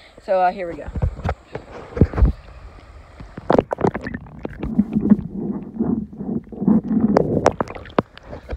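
Water splashes and sloshes close by.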